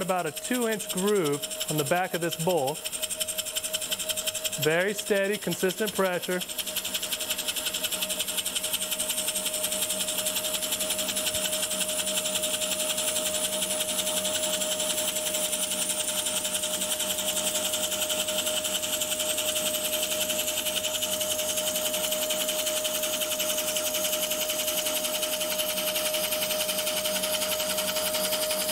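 A wood lathe hums steadily.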